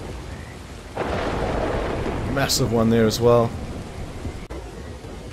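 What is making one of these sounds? Thunder rumbles loudly overhead.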